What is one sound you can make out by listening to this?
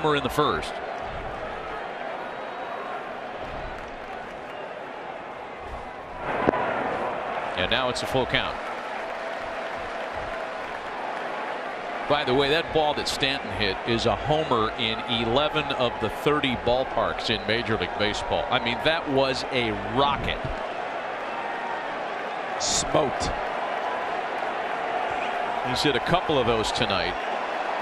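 A large crowd murmurs and cheers in a big open stadium.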